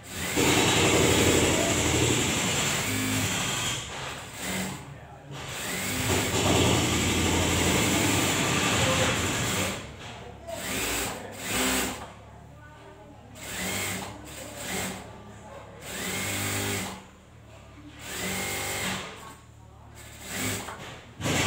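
A sewing machine whirs in bursts close by.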